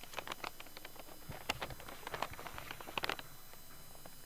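Paper rustles as a letter is unfolded.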